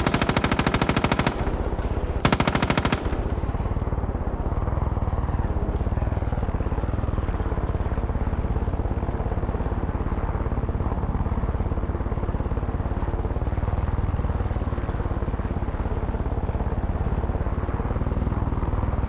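A helicopter's rotor thumps steadily up close.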